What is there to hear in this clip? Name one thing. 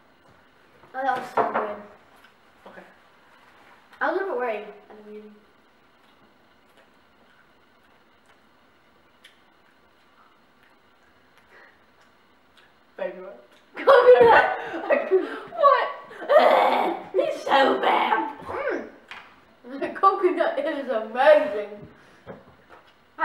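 A second boy talks and laughs close by.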